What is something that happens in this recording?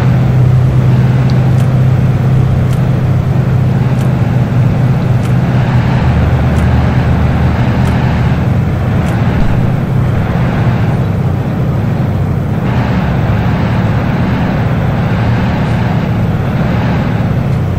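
A truck engine hums steadily at low revs.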